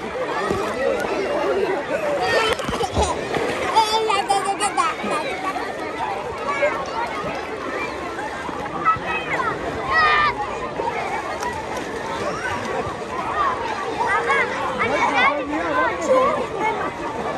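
Water splashes as swimmers move in a pool.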